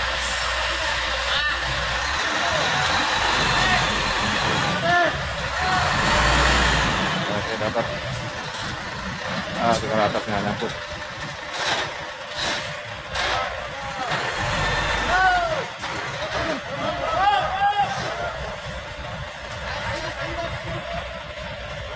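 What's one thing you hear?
A heavy truck engine rumbles nearby as the truck moves slowly.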